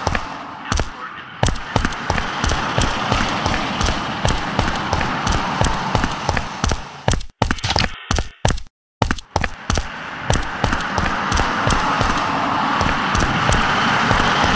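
Footsteps thud quickly and evenly on a hard floor.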